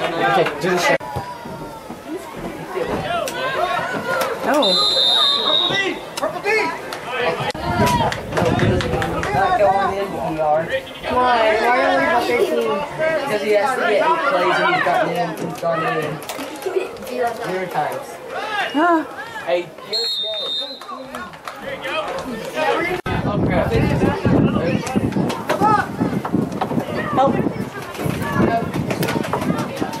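A crowd of men and women shouts and cheers outdoors.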